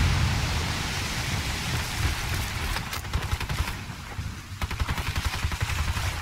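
Boots run on dirt.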